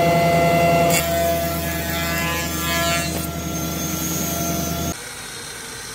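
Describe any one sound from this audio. A wood planer whirs as a board is fed through.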